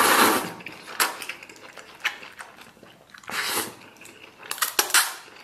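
A man slurps noodles close to the microphone.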